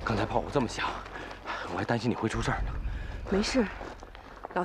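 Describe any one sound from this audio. A young man speaks urgently up close.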